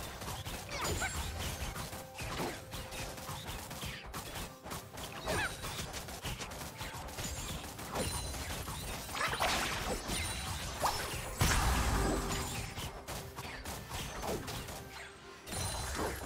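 Game characters clash with sharp magical blasts and hits.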